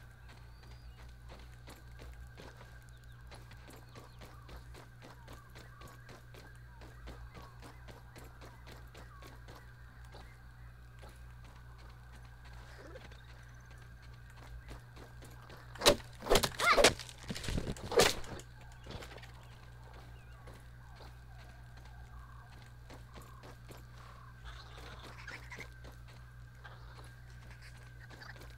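Footsteps crunch steadily over soft ground.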